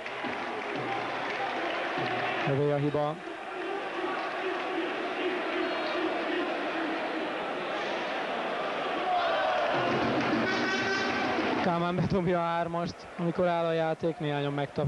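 A crowd murmurs and chatters throughout a large echoing arena.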